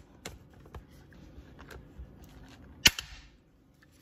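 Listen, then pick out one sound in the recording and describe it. A hand rivet tool snaps sharply against metal several times.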